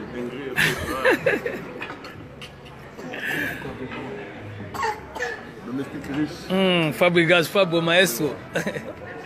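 A young man laughs loudly nearby.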